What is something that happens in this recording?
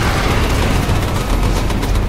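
A tank cannon fires with a loud blast.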